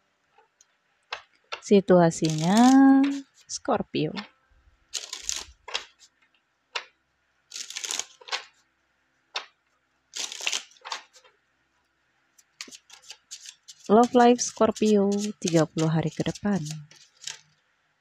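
Playing cards riffle and slap together as they are shuffled.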